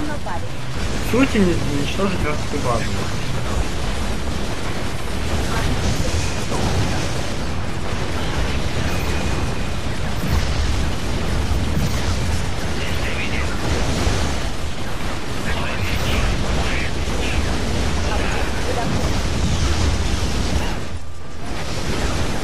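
Explosions boom and crackle in a steady battle din.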